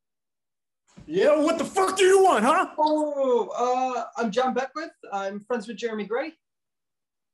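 A man shouts excitedly over an online call.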